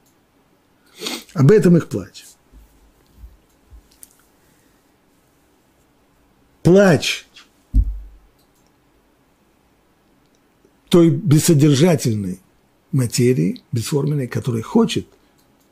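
An elderly man speaks expressively into a close microphone, with pauses.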